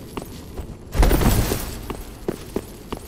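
A loud rushing whoosh swells and fades.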